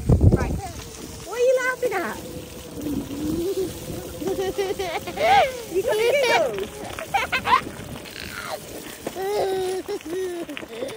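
A little girl laughs and squeals with delight close by.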